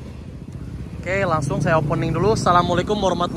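Motorcycle engines rev up nearby.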